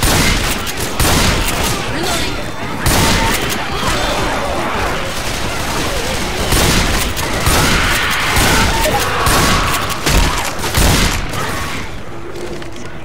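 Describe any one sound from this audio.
Shotgun blasts fire rapidly, one after another.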